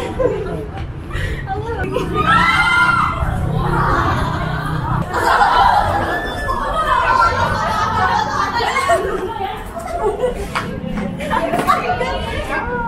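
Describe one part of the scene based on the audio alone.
Young women laugh loudly close by.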